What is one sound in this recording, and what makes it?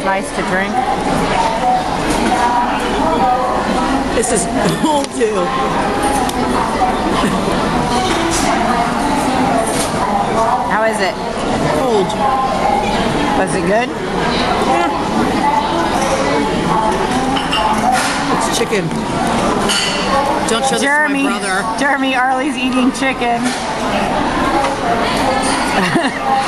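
Diners chatter in a busy hall.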